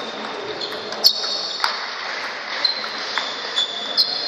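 A table tennis ball clicks sharply back and forth in a rally.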